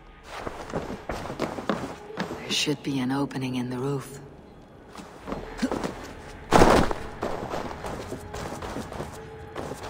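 Footsteps crunch on snow and creak on wooden boards.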